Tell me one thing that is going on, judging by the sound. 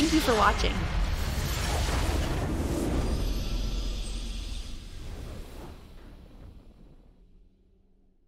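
A triumphant victory fanfare swells and slowly fades out.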